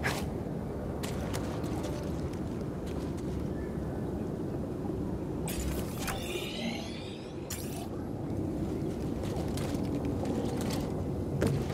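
Footsteps crunch on dirt and rock.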